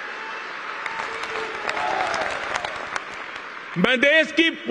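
A crowd applauds and cheers.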